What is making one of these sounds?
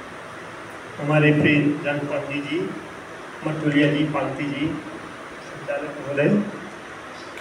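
An elderly man speaks slowly into a microphone, heard through a loudspeaker in an echoing room.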